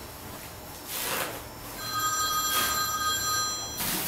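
Paper crinkles and rustles as a sheet is handled.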